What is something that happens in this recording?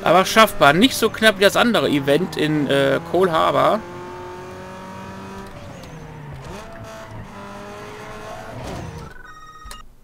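A racing car engine roars and revs up and down, then drones more steadily.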